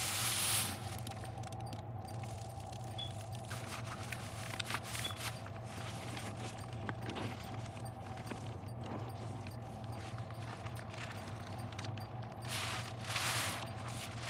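A soapy sponge squelches as gloved hands squeeze it.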